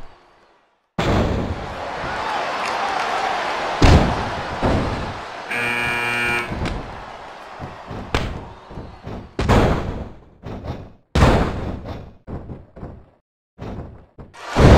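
Bodies slam heavily onto a wrestling ring with loud thuds.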